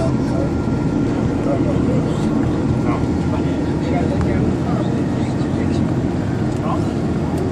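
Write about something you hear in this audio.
An engine rumbles steadily nearby.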